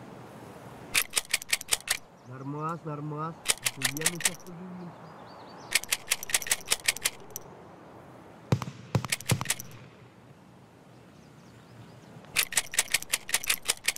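Items clatter and click as they are moved around in a game's inventory.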